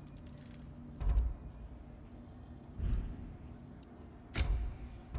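Soft whooshing clicks sound as a game menu changes selection.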